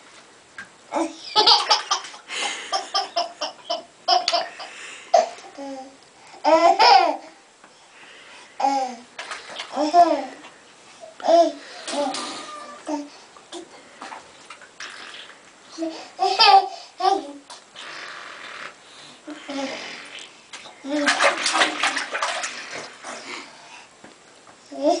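Two toddlers laugh loudly and giggle close by.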